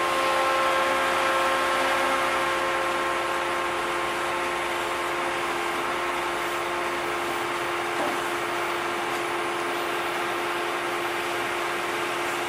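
A harvester's engine drones and whines steadily up close.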